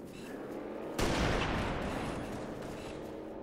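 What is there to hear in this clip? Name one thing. A sniper rifle fires a single loud, booming shot that rumbles away.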